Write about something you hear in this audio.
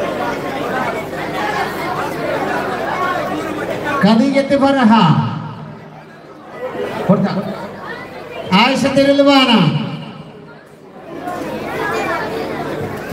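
A man speaks with animation through a loudspeaker.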